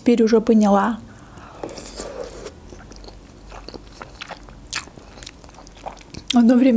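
A young woman chews food wetly close to a microphone.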